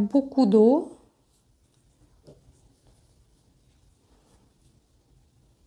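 A brush strokes softly across wet paper.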